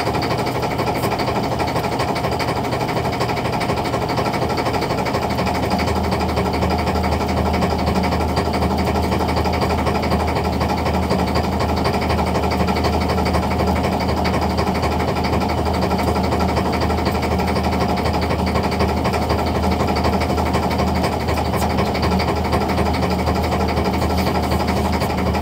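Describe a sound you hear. A net hauler motor whirs as it pulls in a fishing net.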